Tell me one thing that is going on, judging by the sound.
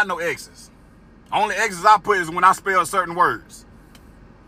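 A man speaks close up in a low voice, in short expressive bursts.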